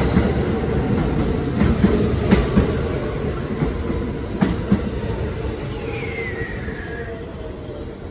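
A subway train roars past close by, its wheels rattling and screeching on the rails.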